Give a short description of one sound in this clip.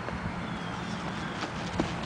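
A goose flaps its wings as it takes off.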